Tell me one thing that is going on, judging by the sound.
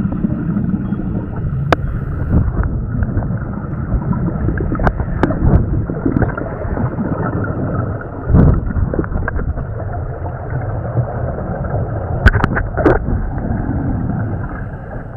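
A scuba diver breathes through a regulator underwater.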